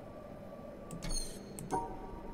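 An electronic puzzle panel gives a short buzz as a wrong answer fades out.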